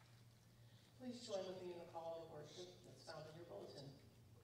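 An elderly woman speaks calmly into a microphone in a large echoing room.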